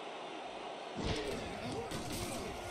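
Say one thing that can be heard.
Football players' pads thud as they collide.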